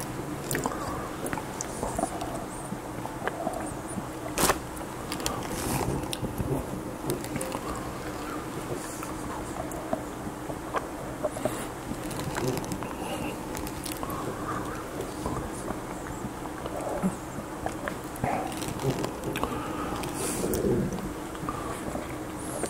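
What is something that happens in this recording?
An older man talks calmly and close to a microphone.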